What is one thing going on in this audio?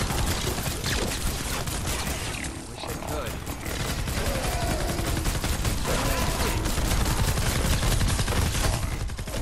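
Gunfire rattles rapidly in a game.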